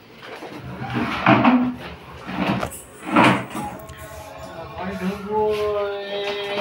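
A small child babbles and squeals close by.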